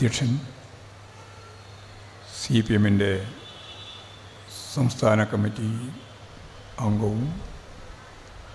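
A middle-aged man speaks loudly and forcefully in short bursts with pauses, heard through a loudspeaker.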